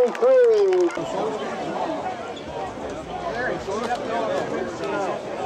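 A crowd of spectators shouts and cheers close by outdoors.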